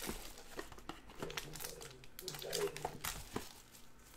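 Cardboard scrapes as a box is opened.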